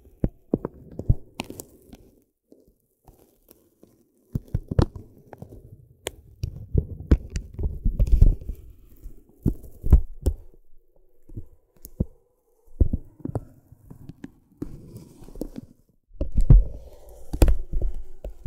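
A plastic stick scratches and taps on crinkly paper close up.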